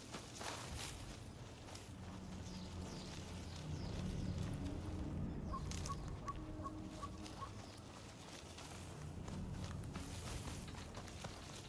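Footsteps rustle through dense leaves and undergrowth.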